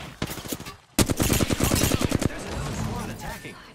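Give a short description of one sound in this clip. Rapid gunfire rattles loudly in bursts.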